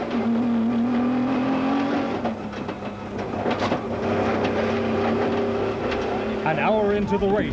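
A car engine roars and strains at speed.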